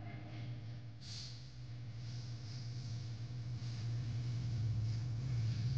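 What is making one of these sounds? A man breathes out heavily through his nose.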